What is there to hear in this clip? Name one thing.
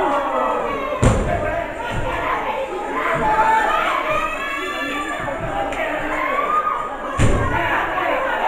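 Wrestlers thud heavily onto a ring mat.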